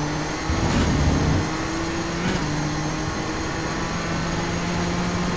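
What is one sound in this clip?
A race car engine drones steadily, with shifting pitch as gears change.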